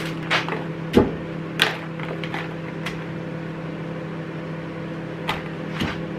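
Cherry tomatoes rattle in a plastic tub.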